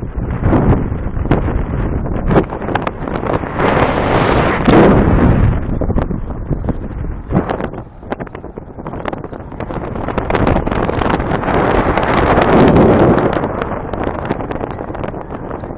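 Wind rushes and buffets loudly past the microphone.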